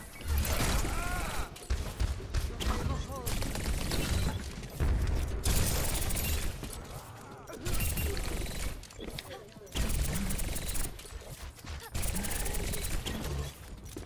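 Twin pistols fire in rapid bursts.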